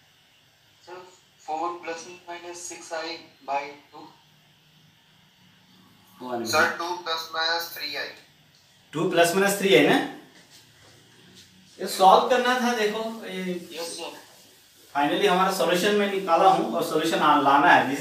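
A man speaks calmly and clearly close to a microphone, explaining.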